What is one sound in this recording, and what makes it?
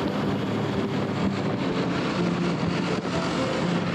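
Another motorcycle passes close by.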